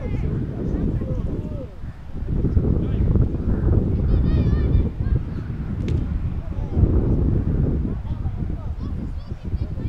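Young male players shout to each other across an open field.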